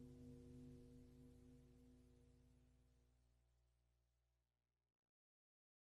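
A low electronic synthesizer drone throbs steadily and slowly fades away to silence.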